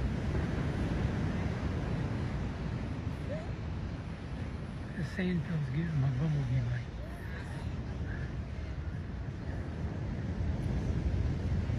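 Waves wash onto a sandy shore.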